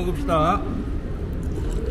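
A drinking fountain's jet of water splashes into a steel basin.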